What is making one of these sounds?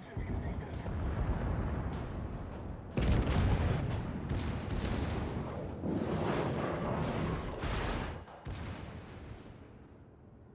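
Shells explode and splash into the sea with deep rumbling roars.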